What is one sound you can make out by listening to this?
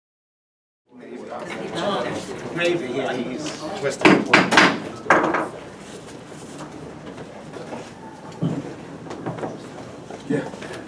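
Men talk and murmur nearby as chairs shuffle.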